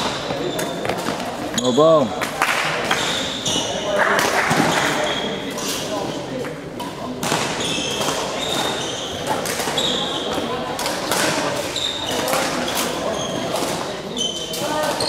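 Badminton rackets hit a shuttlecock with light pops.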